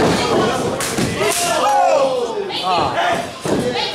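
A wrestler thumps onto a hard floor.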